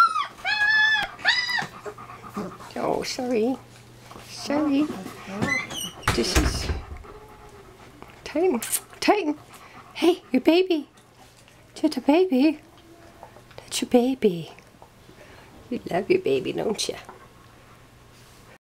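A large dog pants.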